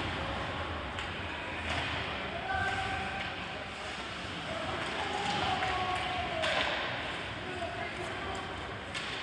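Hockey sticks click and clack against the puck.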